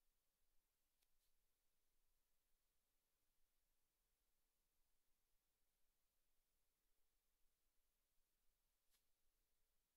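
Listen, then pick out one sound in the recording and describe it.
Tools clink faintly against a robot's metal frame.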